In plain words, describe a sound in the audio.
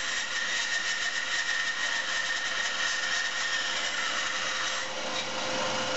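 A band saw blade cuts through wood with a rasping buzz.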